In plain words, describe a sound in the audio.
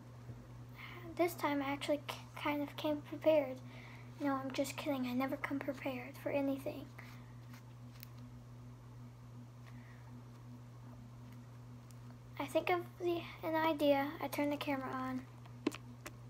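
A young girl talks close by, in bursts.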